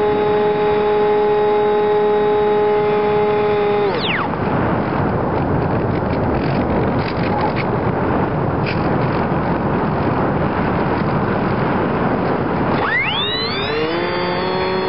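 A small electric motor whines steadily at high speed.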